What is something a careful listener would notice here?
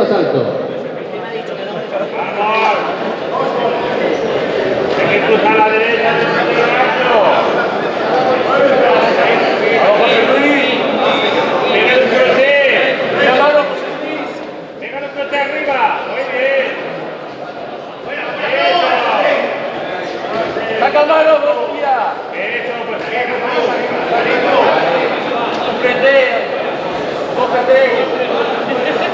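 A crowd of spectators talks and shouts in an echoing hall.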